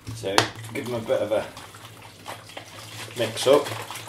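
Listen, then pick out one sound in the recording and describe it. Water sloshes as a man shakes a plastic bottle.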